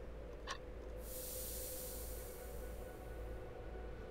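Steam hisses out of a jar and slowly fades.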